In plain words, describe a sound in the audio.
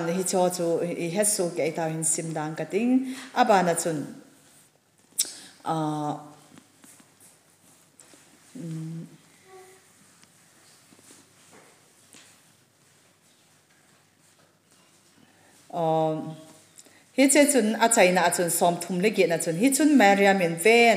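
A woman sings slowly into a microphone, with long pauses between phrases.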